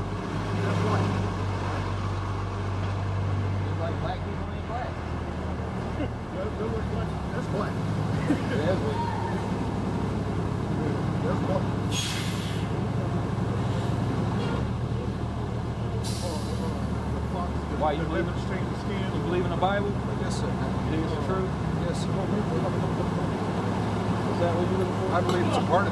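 City traffic rumbles steadily in the background.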